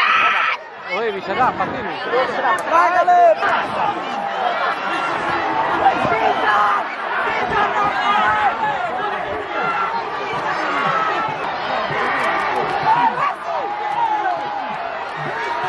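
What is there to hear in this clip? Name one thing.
A large crowd of men and boys shouts and cheers outdoors.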